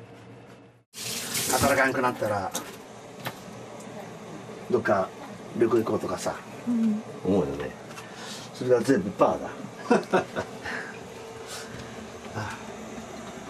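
A middle-aged man speaks casually nearby.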